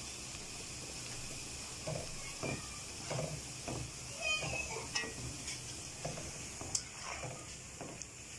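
Oil sizzles and bubbles steadily in a hot pan.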